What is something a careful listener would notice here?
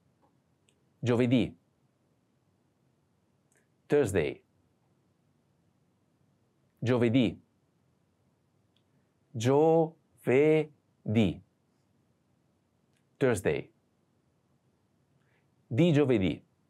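A man speaks single words clearly and calmly into a close microphone, with pauses between them.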